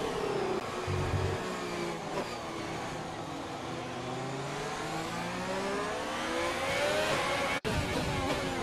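A high-revving Formula One car engine screams and shifts through gears.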